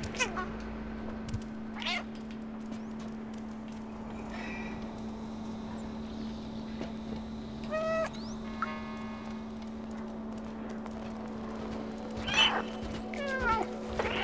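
A cat meows now and then.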